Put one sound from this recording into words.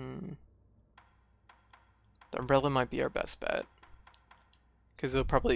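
A soft menu tick sounds with each step through a list.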